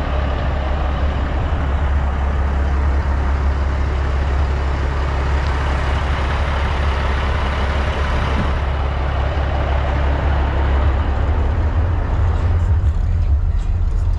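A truck engine idles with a deep, steady rumble.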